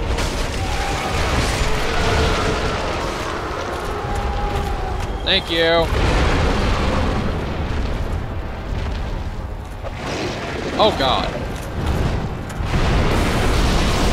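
A sword strikes a huge creature with heavy thuds.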